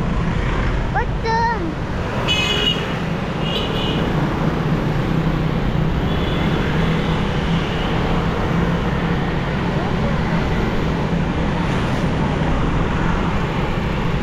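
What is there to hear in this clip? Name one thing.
Scooters buzz past in light street traffic.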